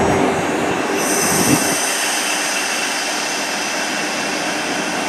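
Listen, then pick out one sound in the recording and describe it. Train wheels squeal and screech on the track.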